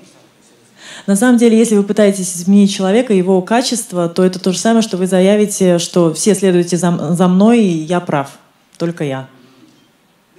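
A woman speaks into a microphone, loud and clear through a loudspeaker.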